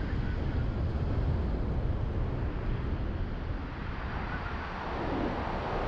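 A car's engine hums and its tyres roll steadily along a road.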